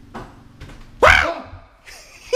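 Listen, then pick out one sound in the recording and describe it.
A door bangs open nearby.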